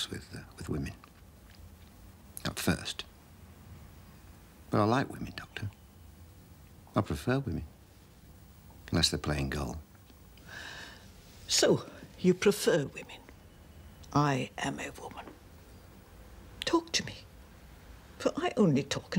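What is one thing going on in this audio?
An elderly woman speaks softly and gently, close by.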